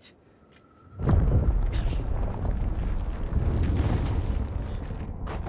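A rush of wind roars loudly.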